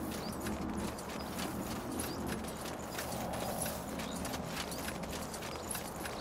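Footsteps patter steadily on stone.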